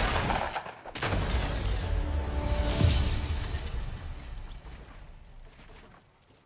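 Triumphant victory music plays.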